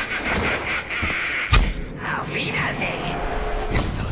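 A swirling portal roars and whooshes.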